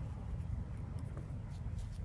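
A paintbrush softly strokes damp paper.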